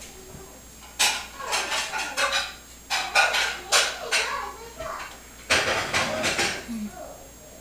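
Small plastic game pieces rattle and clatter on a board.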